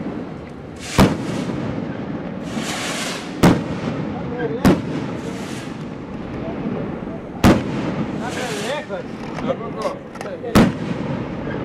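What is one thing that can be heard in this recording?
Firecrackers burst with loud, sharp bangs outdoors, several times.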